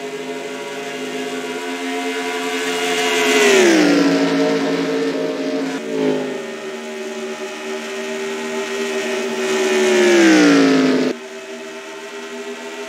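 Racing car engines roar steadily at high speed.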